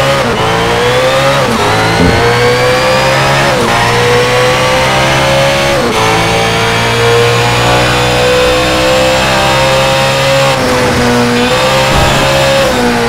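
A racing car engine roars at high revs, rising in pitch and dropping briefly with each gear change.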